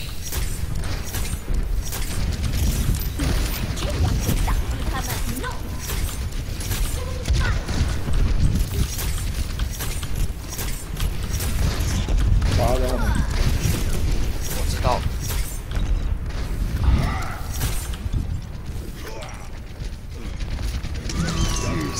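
A game's energy weapon fires rapid blasts.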